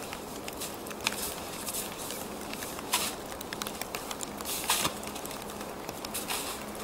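Snow crunches and rustles as a bike is dragged.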